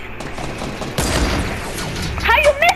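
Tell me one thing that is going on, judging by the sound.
A rifle fires with a sharp, booming crack.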